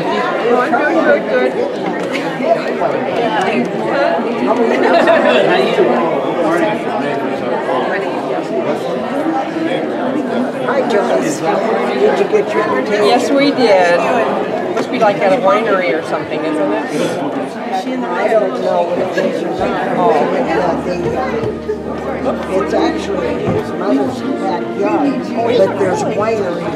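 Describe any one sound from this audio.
A crowd of men and women chat and greet one another close by, in a hall with some echo.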